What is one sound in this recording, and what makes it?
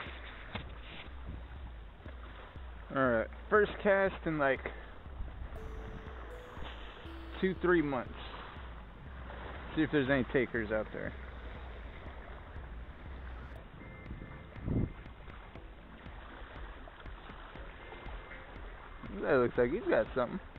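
Sea water laps against rocks.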